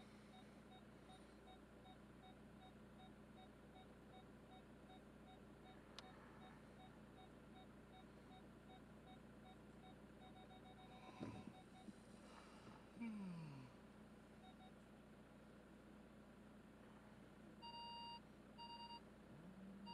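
A car engine idles steadily.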